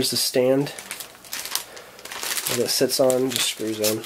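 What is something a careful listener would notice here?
Plastic wrap crinkles and rustles as hands handle it.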